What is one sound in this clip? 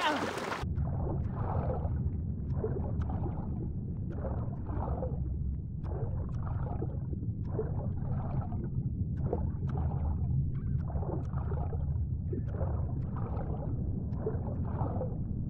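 A low, muffled underwater rumble goes on steadily.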